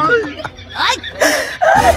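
An older man shouts back.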